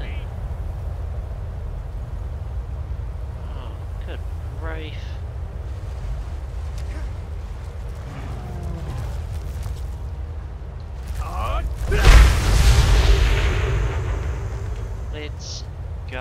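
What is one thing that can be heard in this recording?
Wind howls steadily across open ground.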